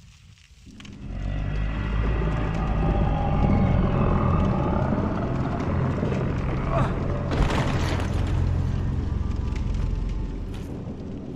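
A huge creature growls with a deep, loud rumble.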